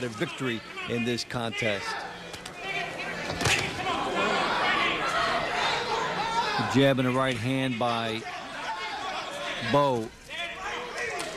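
A crowd cheers and murmurs in a large arena.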